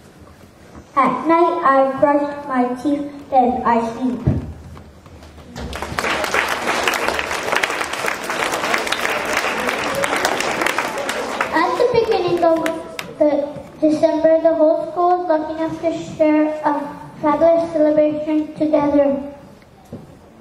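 A young boy reads out slowly through a microphone.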